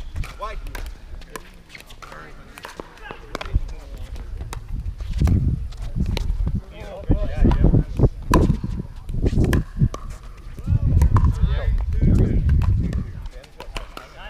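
Paddles strike a plastic ball with sharp pops, back and forth.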